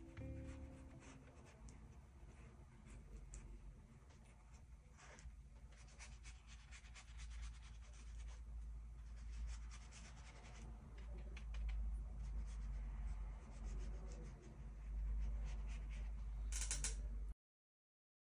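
A brush swishes and taps softly on paper.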